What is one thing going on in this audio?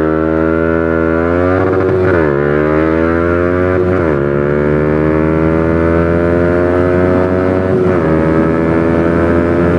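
A motorcycle engine revs hard and climbs in pitch, dropping briefly at each gear change.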